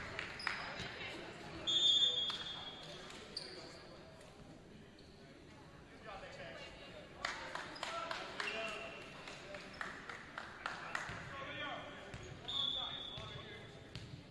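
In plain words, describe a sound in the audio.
Shoes squeak sharply on a gym floor.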